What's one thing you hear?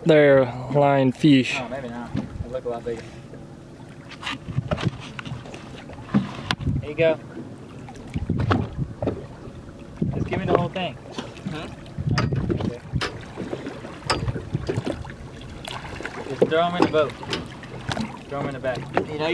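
Water splashes and laps close by as a swimmer paddles.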